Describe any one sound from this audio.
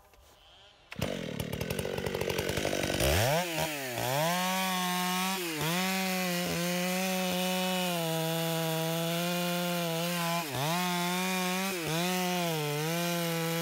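A chainsaw starts up and roars loudly close by.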